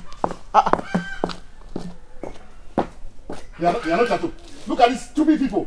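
Footsteps crunch on dirt ground.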